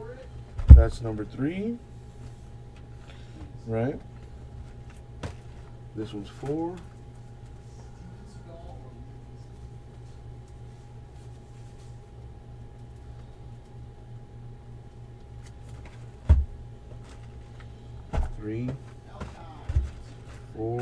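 Cardboard boxes knock and thud.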